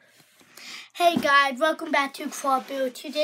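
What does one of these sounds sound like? A young boy speaks close up with animation.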